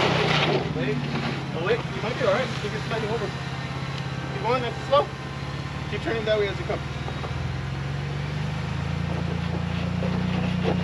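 An engine idles and rumbles steadily as a truck crawls over rock.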